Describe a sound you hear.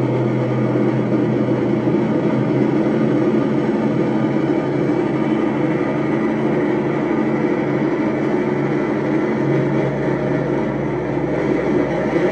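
Droning electronic music plays steadily, with a low hum and buzzing textures.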